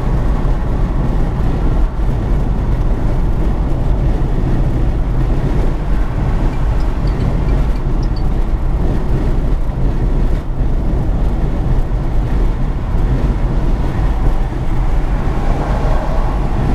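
Tyres roar steadily on a highway from inside a moving car.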